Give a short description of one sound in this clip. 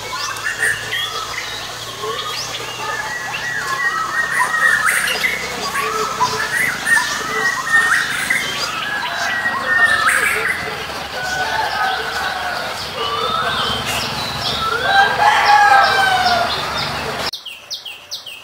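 Many birds sing and chirp busily all around.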